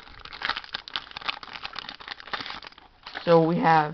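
A plastic wrapper crinkles and rustles as it is torn open.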